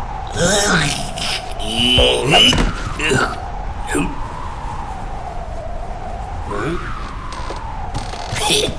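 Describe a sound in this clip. A small creature babbles excitedly in a squeaky voice.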